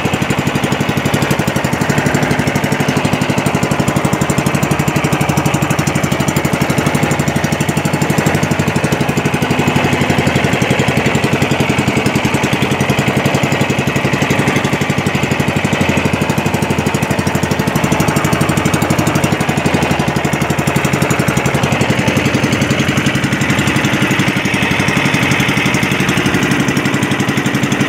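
A boat engine chugs steadily and loudly close by.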